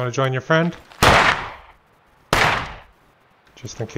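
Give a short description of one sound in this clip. A shotgun fires loudly, twice.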